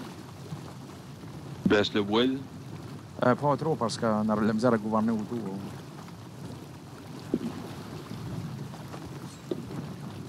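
Waves wash softly against a wooden ship's hull.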